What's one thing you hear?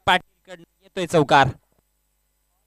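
A man commentates with animation over a microphone.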